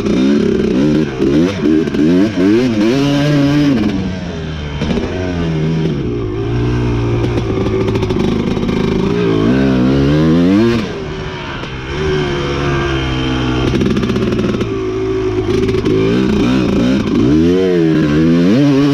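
A dirt bike engine revs up and down close by.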